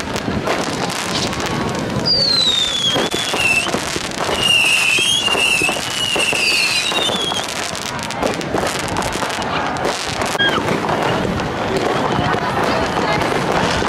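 Fireworks crackle and bang overhead.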